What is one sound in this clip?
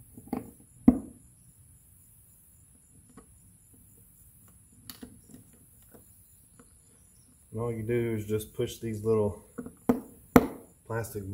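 Plastic knocks and clicks as a fitting is twisted into a plastic base.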